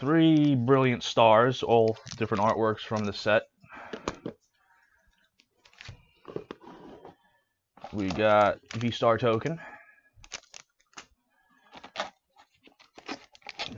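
Foil card packs crinkle and rustle in someone's hands.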